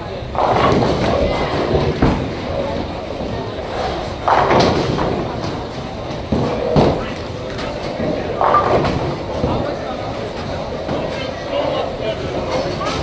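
Bowling balls rumble down lanes in a large echoing hall.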